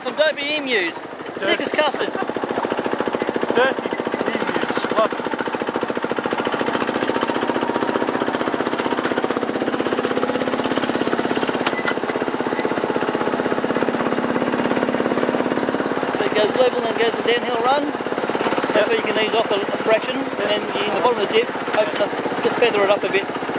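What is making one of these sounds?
A small train engine hums steadily while rolling along.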